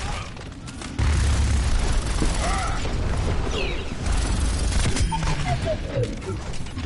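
Explosions boom with deep rumbling.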